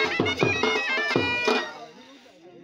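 A drum beats loudly in a quick rhythm, then stops.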